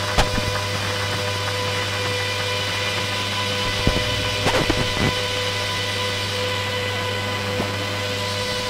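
Sharp clicks and glitchy crackles burst through the electronic music.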